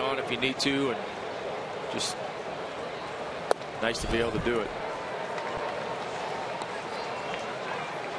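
A large crowd murmurs in an open stadium.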